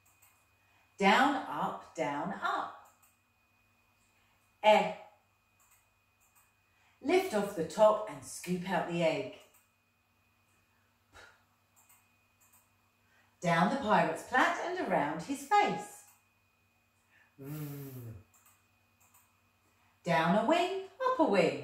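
A woman speaks clearly and slowly, as if teaching, in short bursts with pauses.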